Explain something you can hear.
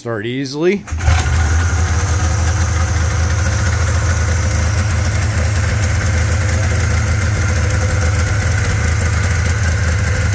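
An engine idles nearby with a steady low rumble.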